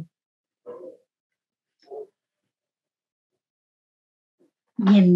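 A woman speaks calmly and briefly, close to a microphone, with pauses between words.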